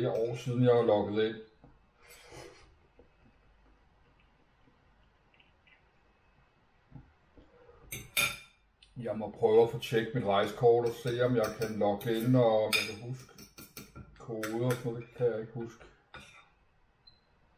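Cutlery clinks and scrapes on a plate.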